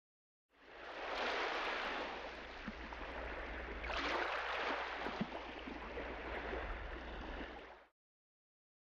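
Waves wash softly against a boat's hull.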